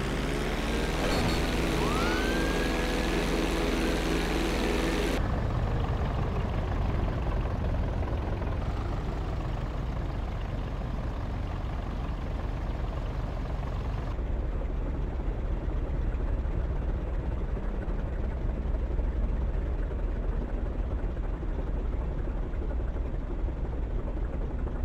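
A propeller plane's engine drones steadily as it flies.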